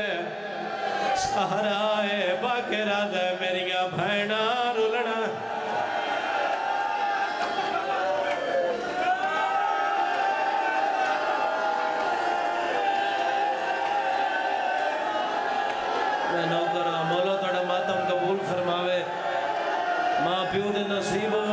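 A crowd of men beats their chests in rhythm.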